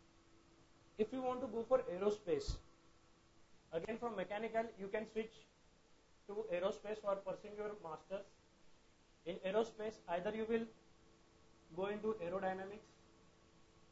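A man speaks calmly and clearly into a close microphone, in bursts with pauses.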